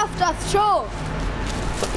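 A boy calls out loudly nearby.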